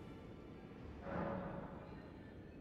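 A soft chime sounds as a menu opens.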